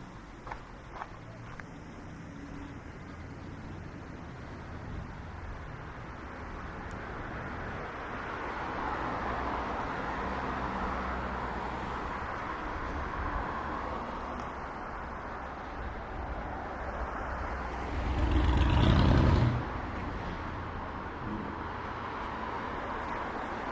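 City traffic rumbles steadily past outdoors.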